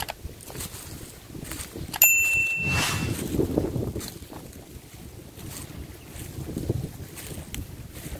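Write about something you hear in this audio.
Wind blows and rustles through the trees outdoors.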